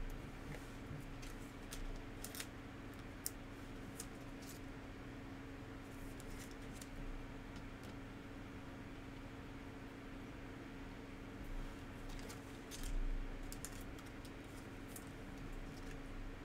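Plastic card sleeves crinkle and click as trading cards are handled.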